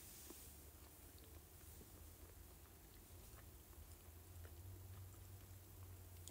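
A young woman chews food quietly close by.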